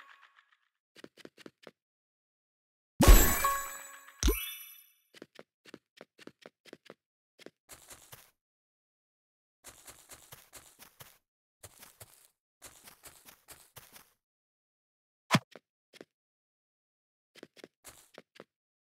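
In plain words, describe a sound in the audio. Game footsteps patter quickly across blocks.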